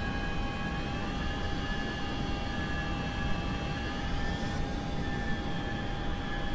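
A jet engine roars with a steady high whine.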